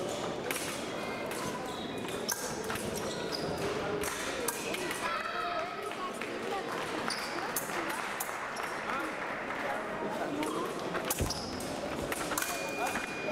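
Fencers' shoes squeak and thud on the floor.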